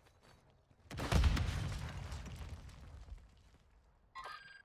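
An explosion booms loudly and rumbles away.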